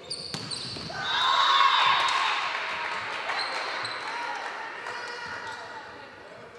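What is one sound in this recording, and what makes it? Young women players shout and cheer in an echoing hall.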